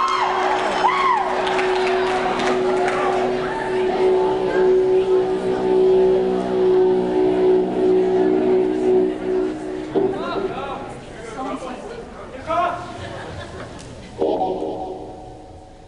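An electric guitar plays loud, distorted notes in a large echoing hall.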